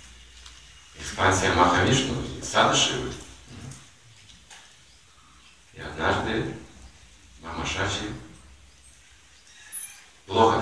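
An elderly man speaks calmly in short bursts, close by.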